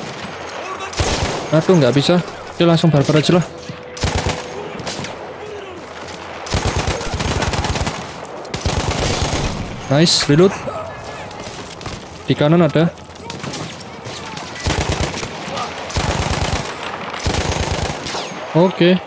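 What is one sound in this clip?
Machine-gun fire rattles in rapid bursts.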